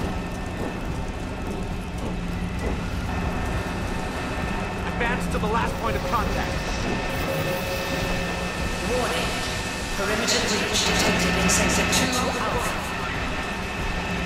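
Boots clang on metal grating stairs.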